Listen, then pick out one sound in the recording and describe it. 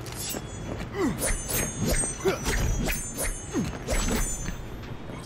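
A blade swishes through the air with quick slashing strokes.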